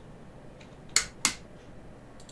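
A door latch clicks as a door swings open.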